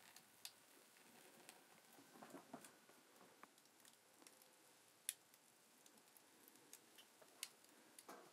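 A fire crackles and pops nearby.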